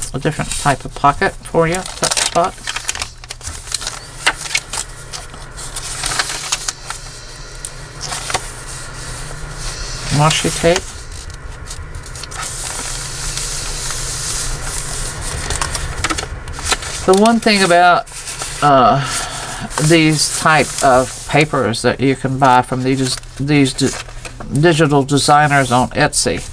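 Paper pages rustle as they are turned and handled.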